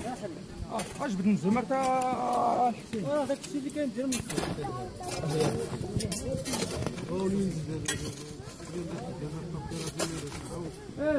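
Several men and boys talk and call out nearby, outdoors.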